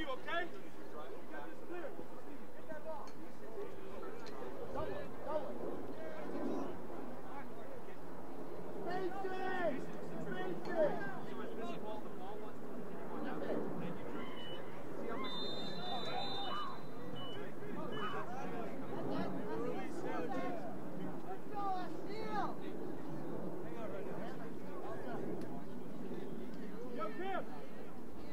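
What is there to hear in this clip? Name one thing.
Young men shout and call out across an outdoor field.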